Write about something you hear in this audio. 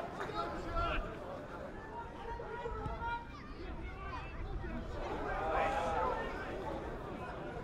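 Men shout to each other on an outdoor football pitch.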